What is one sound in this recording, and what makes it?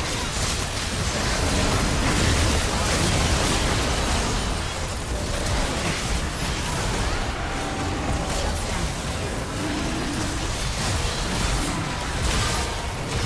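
Spell blasts and hits crackle and boom in a fast battle.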